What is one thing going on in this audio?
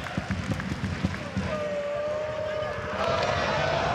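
A man shouts with excitement close by.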